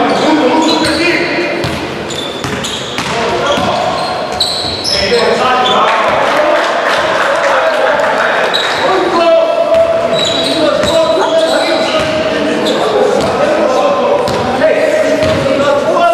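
A basketball bounces on the floor as a player dribbles.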